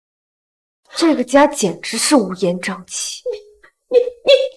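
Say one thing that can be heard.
A young woman speaks in an alarmed voice.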